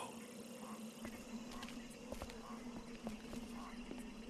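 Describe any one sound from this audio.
Soft footsteps creep across a hard floor.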